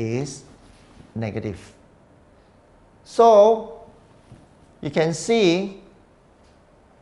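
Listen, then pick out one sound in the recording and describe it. A man speaks calmly through a microphone, explaining in short phrases.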